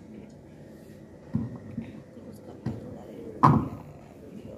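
A microphone thumps as it is handled.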